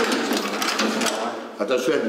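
A key turns and clicks in a metal door lock.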